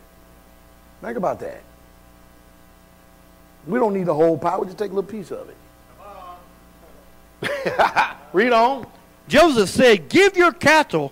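A man preaches with animation through a microphone in a large room, pausing between phrases.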